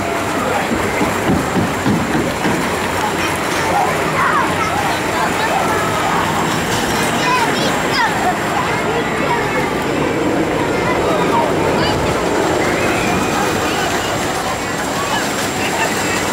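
A crowd of people chatters and murmurs outdoors nearby.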